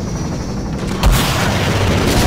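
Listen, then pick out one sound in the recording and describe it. A rocket launcher fires with a sharp blast.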